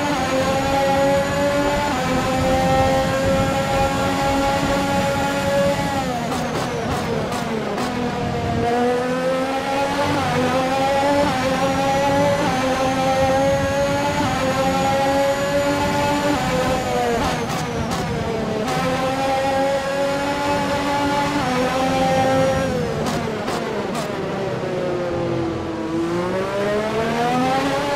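A racing car engine screams at high revs, dropping in pitch when braking and climbing again as it speeds up.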